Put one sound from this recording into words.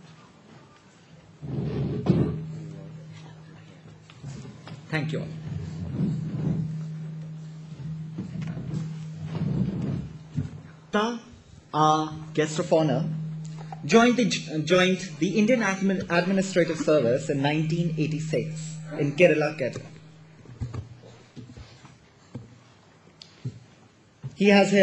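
A young man speaks into a microphone over loudspeakers in a large echoing hall.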